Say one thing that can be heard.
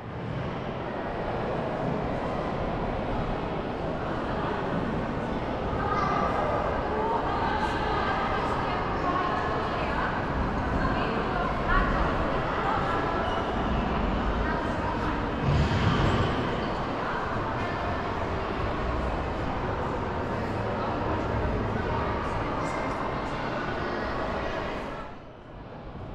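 A crowd murmurs and chatters, echoing in a large hall.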